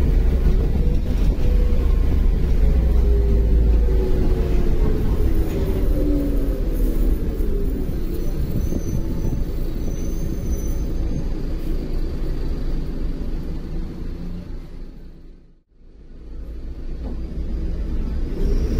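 A bus engine rumbles steadily as the bus drives.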